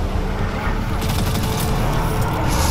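A rapid-fire gun shoots in bursts.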